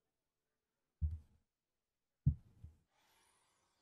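Game sound effects thud as cards are played.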